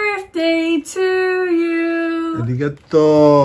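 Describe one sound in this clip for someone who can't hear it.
A middle-aged woman sings cheerfully close by.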